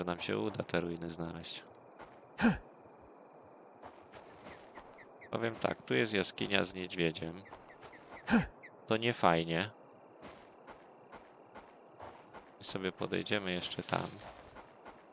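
Footsteps rustle through undergrowth on a forest floor.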